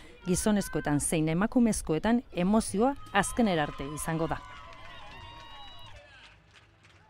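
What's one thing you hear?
A crowd cheers and claps nearby.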